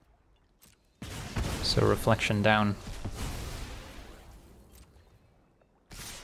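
A magical game spell bursts with a crackling whoosh.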